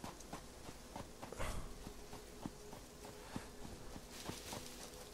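Footsteps crunch steadily through grass.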